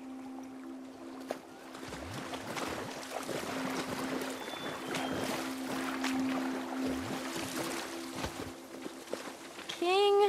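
Water splashes as someone wades through a shallow pond.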